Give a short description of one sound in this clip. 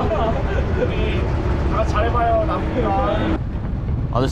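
A young man talks cheerfully up close.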